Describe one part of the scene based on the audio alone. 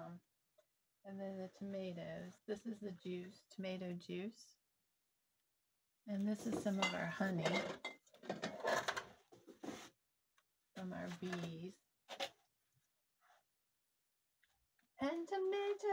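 A woman talks calmly and close by, in pauses.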